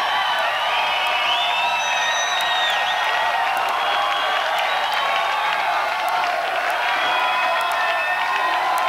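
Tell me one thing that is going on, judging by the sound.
A large crowd cheers and screams loudly.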